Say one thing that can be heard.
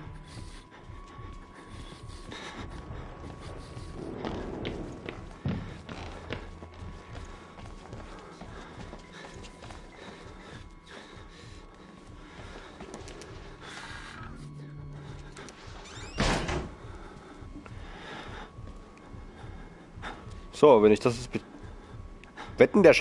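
Footsteps fall steadily on a hard floor, echoing slightly.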